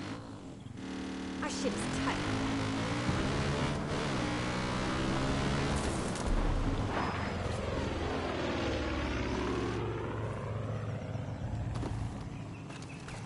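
A quad bike engine revs and rumbles over rough ground.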